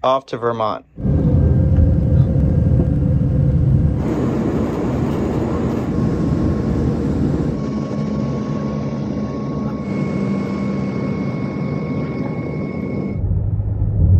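A jet airliner's engines roar steadily in flight.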